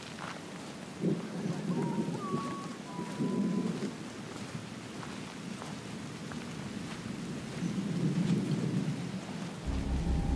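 Footsteps crunch on loose gravel and rock.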